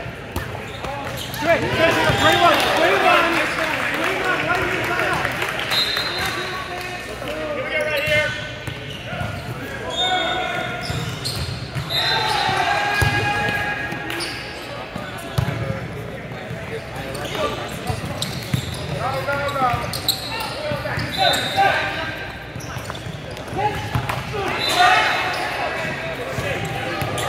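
Adult players call out and shout in a large echoing gym.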